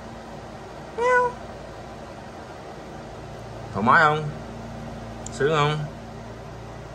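A cat meows loudly up close, three times.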